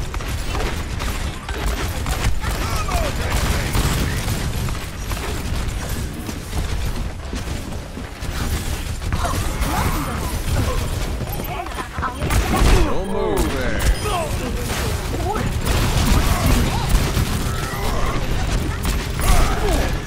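Explosions and game effects boom and whoosh.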